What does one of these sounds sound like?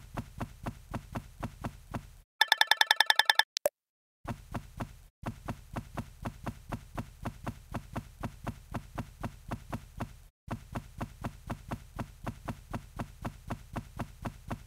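Footsteps patter quickly and steadily on grass.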